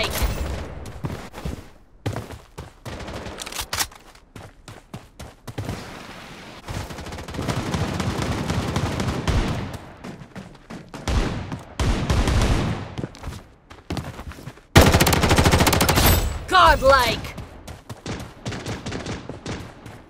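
Footsteps thud on the ground while running.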